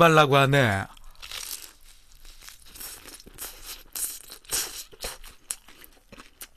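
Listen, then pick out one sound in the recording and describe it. A young man chews food noisily close to a microphone.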